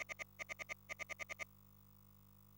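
Short electronic blips tick rapidly.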